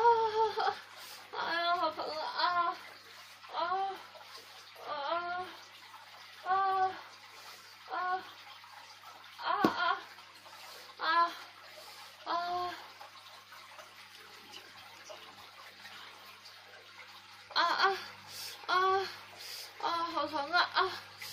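Fabric rustles softly as hands pull at a sock.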